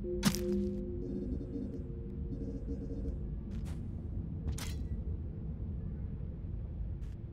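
Short electronic whooshes sound now and then.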